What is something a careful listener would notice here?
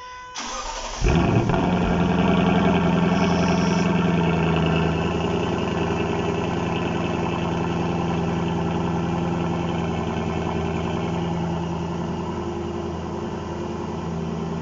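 A car engine starts with a roar and then idles with a deep, steady rumble from the exhaust.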